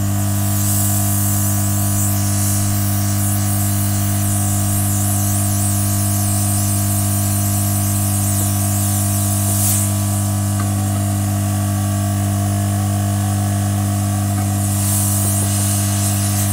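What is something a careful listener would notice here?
A heat gun blows with a steady, loud hum and rushing air.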